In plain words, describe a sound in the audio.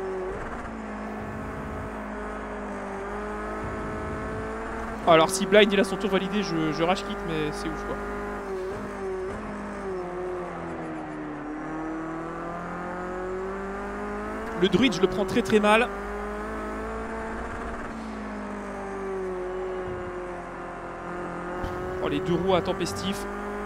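A racing car engine drones steadily, its pitch rising and falling with the gears.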